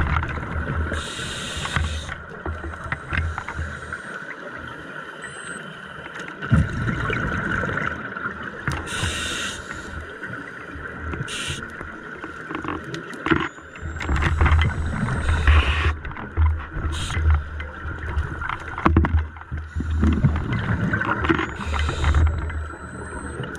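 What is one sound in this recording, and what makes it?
A scuba diver breathes out through a regulator in bubbling bursts underwater.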